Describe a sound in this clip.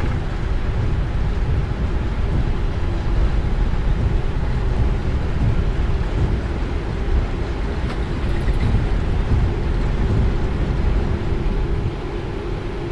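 Wheels rumble over a runway, then fall quiet at liftoff.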